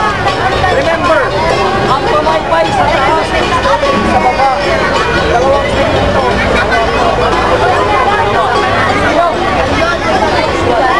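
A large outdoor crowd chatters and cheers.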